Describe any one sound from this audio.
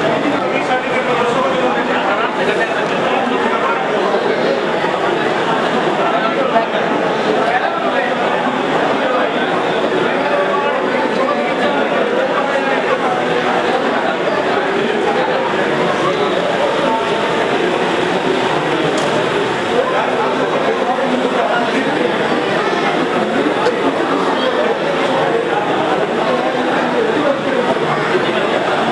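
A crowd of men chatters all around in a large echoing hall.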